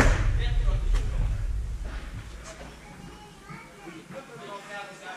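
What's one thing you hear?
Two men talk calmly nearby.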